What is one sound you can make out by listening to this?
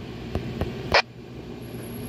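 A handheld radio's knob clicks as it is turned.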